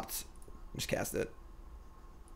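A young man speaks briefly and casually, close to a microphone.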